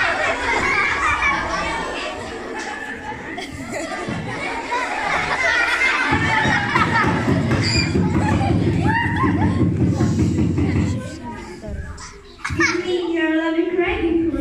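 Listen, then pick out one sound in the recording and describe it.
Young children chatter and call out nearby in an echoing hall.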